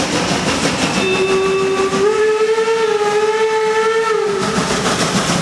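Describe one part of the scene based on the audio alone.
A steam locomotive's whistle blows loudly.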